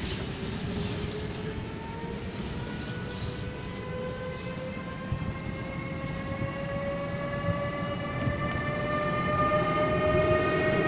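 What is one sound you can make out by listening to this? An electric train rolls into the station with a low rumble.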